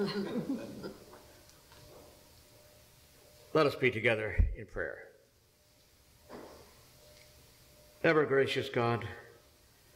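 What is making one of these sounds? An elderly man speaks slowly and calmly into a microphone, with pauses, in a slightly echoing room.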